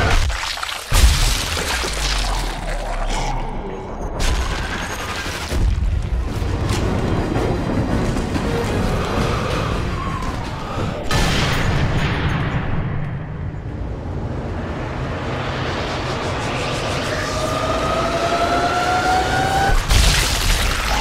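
A bullet smashes through bone with a crunching impact.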